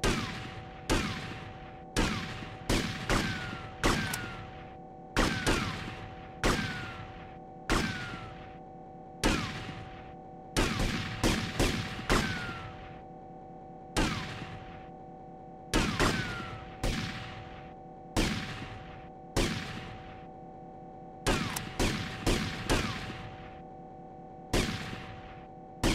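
Gunshots ring out one after another in an echoing hall.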